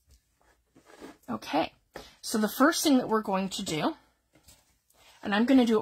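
Paper rustles as a sheet is lifted and turned.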